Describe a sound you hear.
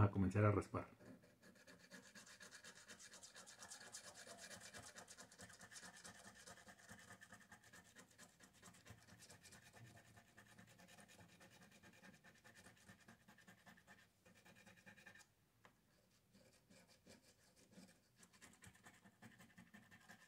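A coin scratches rapidly at a scratch card.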